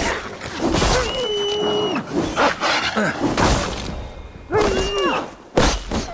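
A wolf yelps in pain.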